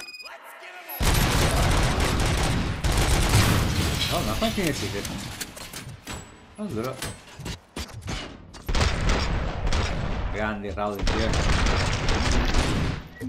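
Gunshots fire in rapid bursts, echoing in a large hall.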